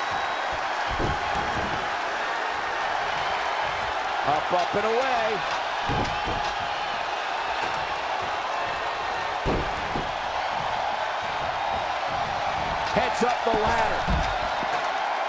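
Bodies slam heavily onto a wrestling ring with loud thuds.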